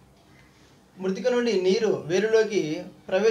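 A middle-aged man speaks clearly and with animation close to the microphone.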